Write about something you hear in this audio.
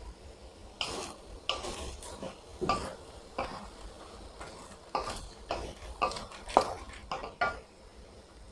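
A wooden spatula scrapes and clanks against a metal wok.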